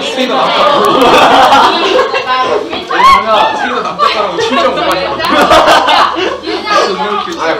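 Several young people chatter and talk over each other nearby.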